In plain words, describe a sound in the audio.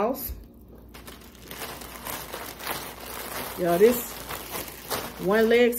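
A plastic bag crinkles.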